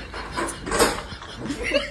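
A young girl speaks nearby.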